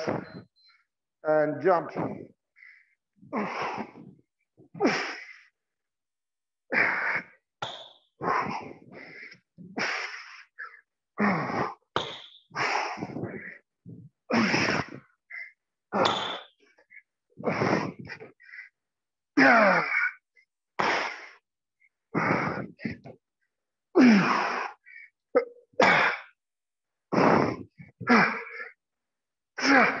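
A man speaks in short, breathless bursts in an echoing room.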